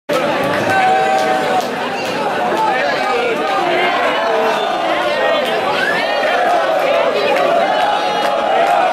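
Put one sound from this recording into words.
A rock band plays loudly on stage.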